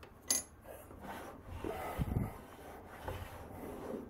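A heavy lathe tailstock scrapes as it slides along its rails.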